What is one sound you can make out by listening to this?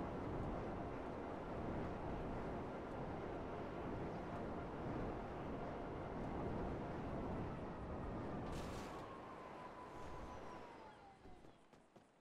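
A jet engine roars steadily, then winds down and fades.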